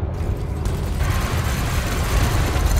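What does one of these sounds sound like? Laser cannons fire in a rapid, harsh crackling burst.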